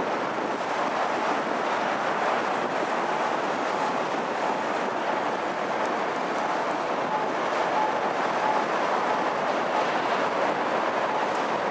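Water rushes and splashes steadily past a moving boat.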